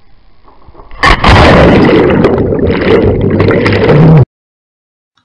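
Water splashes and bubbles loudly close by.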